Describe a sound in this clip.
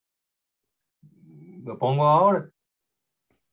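An elderly man speaks briefly over an online call.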